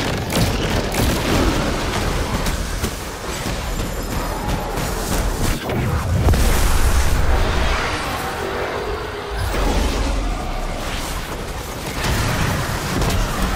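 Rapid gunfire crackles.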